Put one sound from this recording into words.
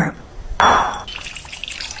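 Thick sauce pours and splashes into a bowl.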